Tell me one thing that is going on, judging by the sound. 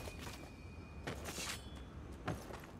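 A metal weapon clanks as it is drawn.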